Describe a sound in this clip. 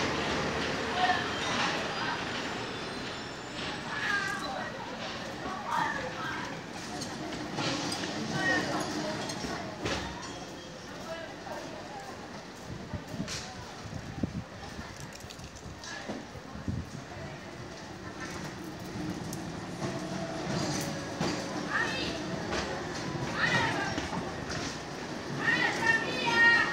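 An old tram rumbles and rattles along rails, slowly coming closer.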